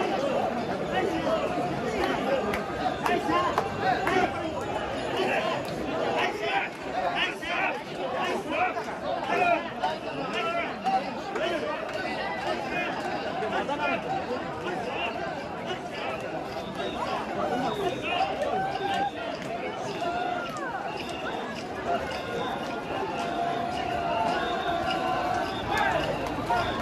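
A large outdoor crowd chatters and calls out all around.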